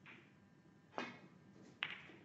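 A snooker cue strikes the cue ball with a sharp tap.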